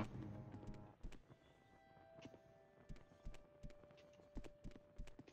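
Footsteps thud slowly on a stone floor.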